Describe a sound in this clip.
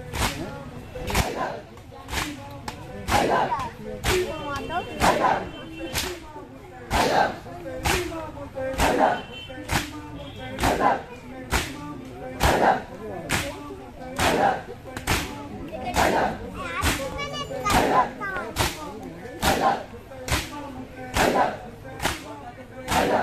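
Men beat their chests in a steady rhythm, with loud slaps.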